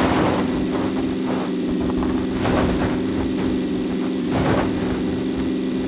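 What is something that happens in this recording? Tyres rumble and bump over rough ground.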